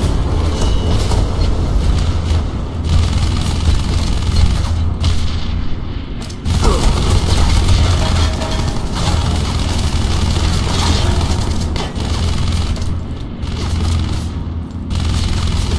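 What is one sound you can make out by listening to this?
Guns fire in bursts with echoing shots.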